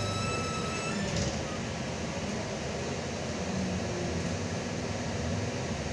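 A bus engine hums and rumbles steadily from inside while driving.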